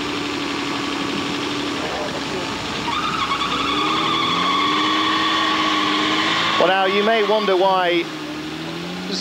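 An off-road vehicle's engine revs hard, rising and falling in pitch.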